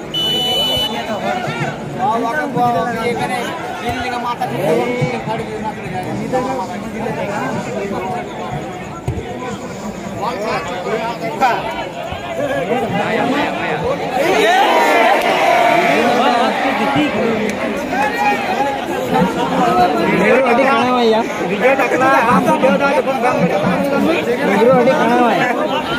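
A large outdoor crowd shouts and cheers, growing louder partway through.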